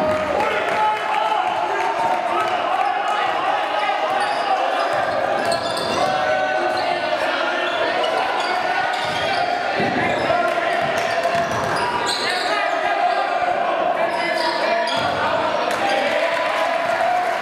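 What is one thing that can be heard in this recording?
A crowd of spectators cheers and shouts in a large echoing gym.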